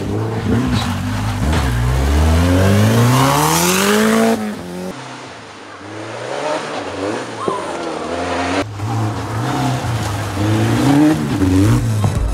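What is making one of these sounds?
A rally car engine roars and revs hard, rising in pitch as it accelerates.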